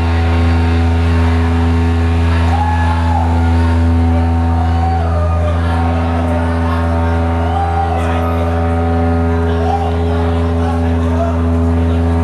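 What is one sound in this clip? A man shouts into a microphone.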